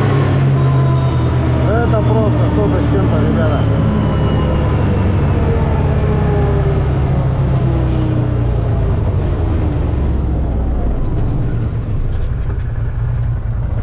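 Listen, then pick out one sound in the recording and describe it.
A vehicle's engine hums steadily from close by.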